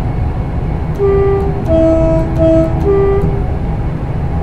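A train horn sounds in short two-tone blasts.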